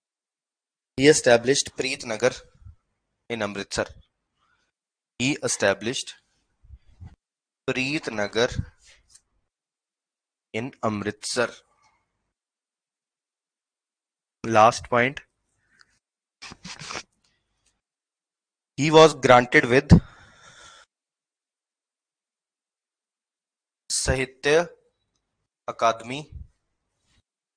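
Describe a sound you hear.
A man speaks calmly in short phrases close to a microphone, with pauses.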